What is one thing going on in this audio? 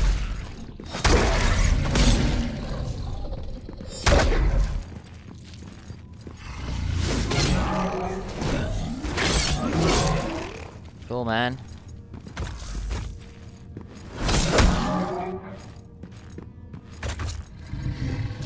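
Blades clash and slash with heavy, ringing hits.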